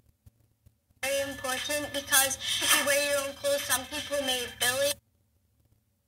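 A young girl speaks calmly and close up.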